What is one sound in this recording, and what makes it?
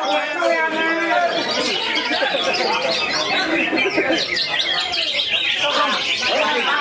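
A small songbird sings a fast, busy warbling song with many chirps.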